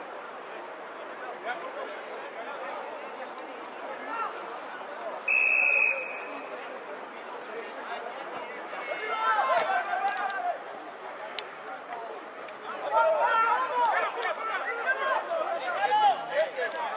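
A crowd murmurs in the stands outdoors.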